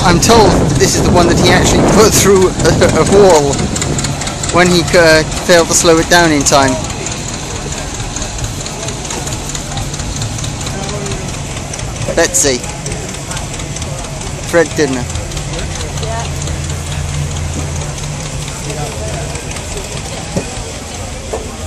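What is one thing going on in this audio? A steam engine idles with a steady low rumble.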